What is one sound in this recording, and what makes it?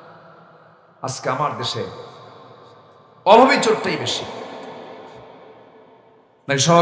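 A man preaches with animation through a microphone, his voice echoing through loudspeakers.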